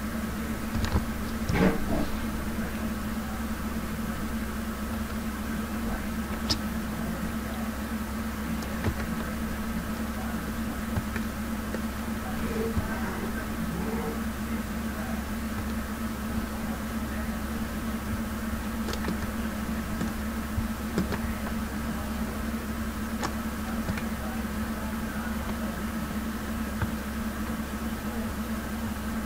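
Spinning rotors drone with a steady, low mechanical hum.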